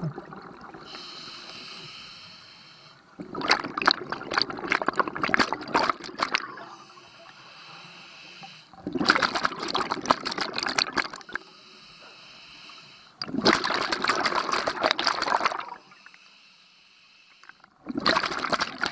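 A diver's regulator hisses with a thin whine during each breath in.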